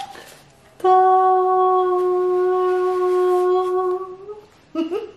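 A young woman sings a long, steady high note close by.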